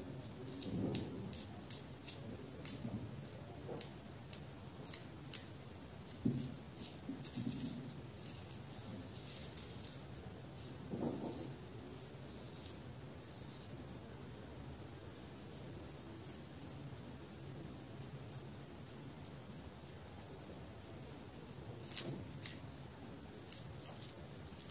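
Fingernails make small clicks and ticks against the scalp.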